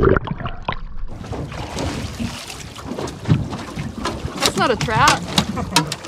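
Water splashes and sloshes against a boat's side.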